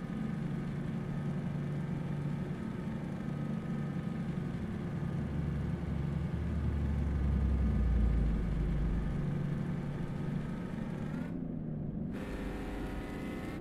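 A truck engine drones steadily while driving.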